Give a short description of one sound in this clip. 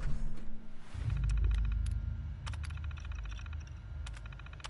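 A computer terminal chirps and beeps rapidly as text prints out.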